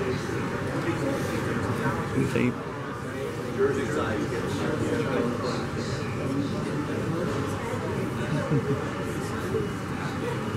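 A crowd of adults chatters in the background.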